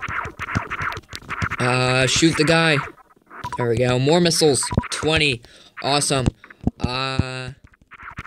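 Video game laser shots fire in short bursts.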